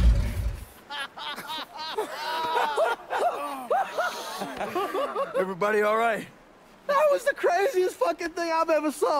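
A man shouts and laughs with excitement.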